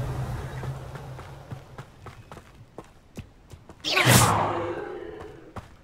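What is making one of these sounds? Footsteps run across soft ground.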